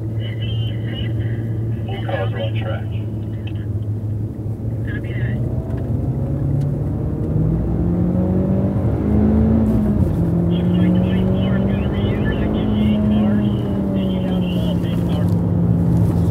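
Tyres squeal through the corners.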